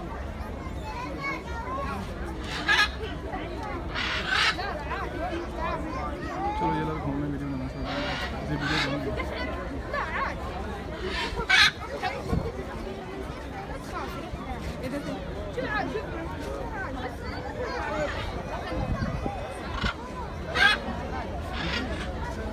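A crowd of children and adults chatters nearby.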